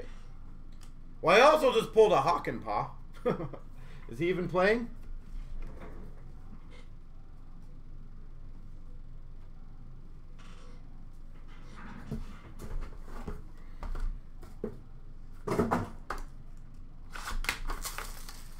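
Plastic-wrapped card packs rustle and tap as they are handled.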